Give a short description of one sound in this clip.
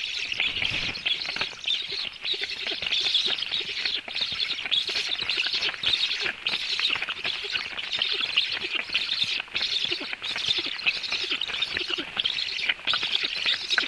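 Black stork chicks beg with rasping calls.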